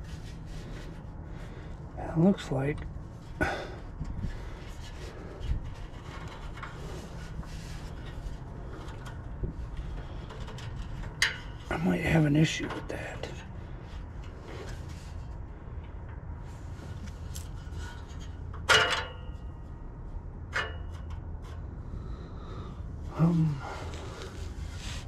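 A wrench clinks against metal parts.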